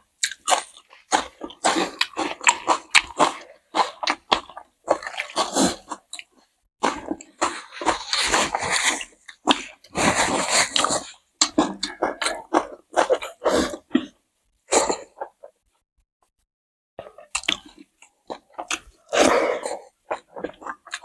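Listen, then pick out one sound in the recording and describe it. Close, loud chewing and smacking of food.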